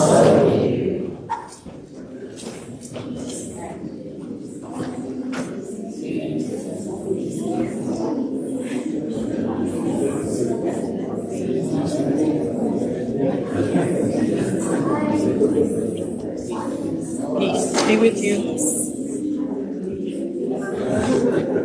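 A congregation of men and women chat and greet each other in a large room.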